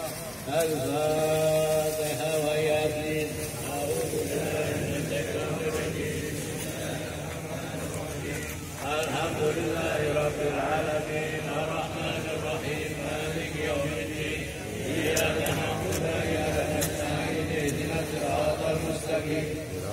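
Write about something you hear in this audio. A large crowd of men chants together loudly outdoors.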